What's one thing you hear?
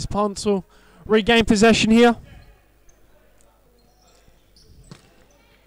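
A ball is kicked across a hard indoor court.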